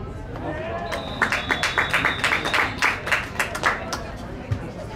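Players clap their hands rapidly in rhythm.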